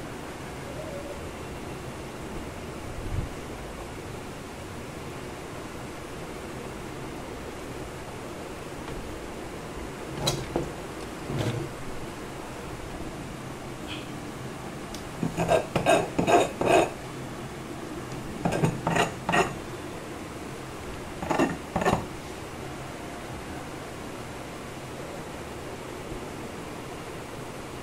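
Metal probe tips tap lightly against a circuit board.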